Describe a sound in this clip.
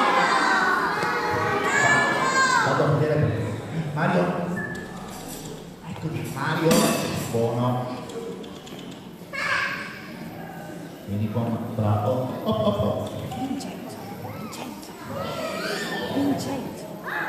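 Children chatter and call out nearby.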